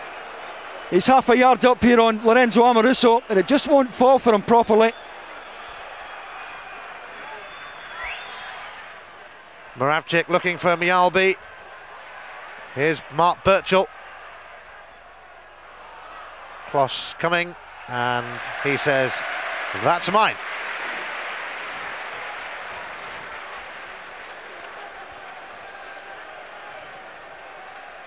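A large stadium crowd murmurs and roars steadily, swelling for a while before easing off.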